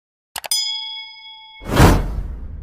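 A notification bell chimes.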